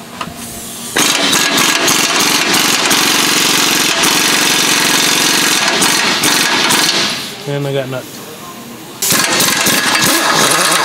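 An air impact wrench whirs loudly and steadily.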